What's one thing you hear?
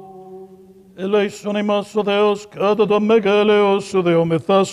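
A group of people sings loudly in a large echoing hall.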